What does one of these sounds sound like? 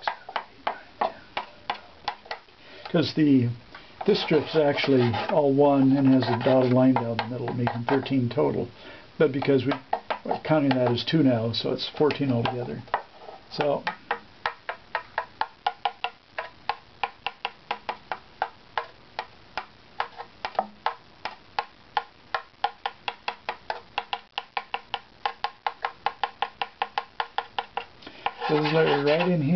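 A small blade scrapes wood in quick, even strokes.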